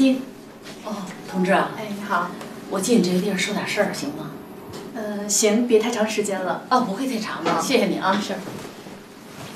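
A young woman answers calmly.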